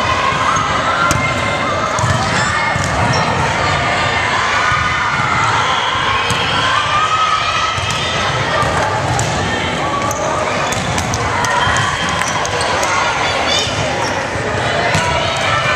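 Girls call out and chatter in a large echoing gym.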